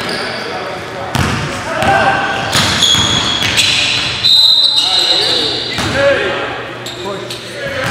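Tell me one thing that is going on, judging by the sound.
A basketball bounces on the floor, echoing in a large hall.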